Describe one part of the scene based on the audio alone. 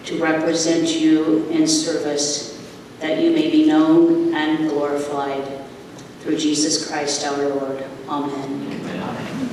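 A congregation sings a hymn together in a large echoing hall.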